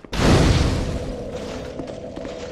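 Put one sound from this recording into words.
A fire flares up with a loud whoosh that slowly dies away.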